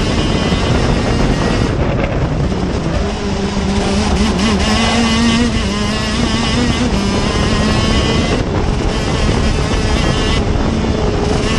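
A kart engine whines loudly up close, its pitch rising and falling as it accelerates and slows.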